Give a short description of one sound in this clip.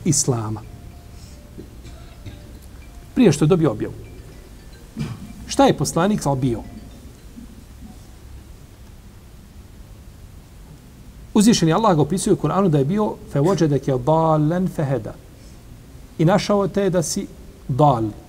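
A middle-aged man speaks calmly into a close microphone, with pauses.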